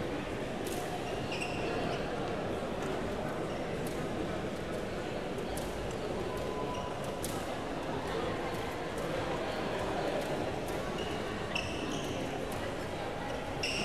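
Rackets hit a shuttlecock with light pops.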